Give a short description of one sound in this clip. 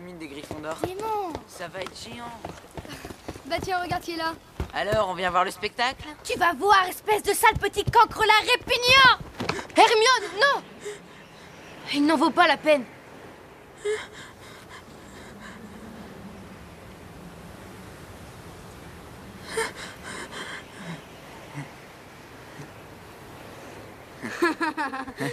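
A young woman speaks angrily and shouts.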